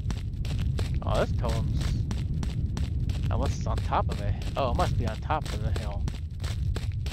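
A man speaks into a headset microphone close up.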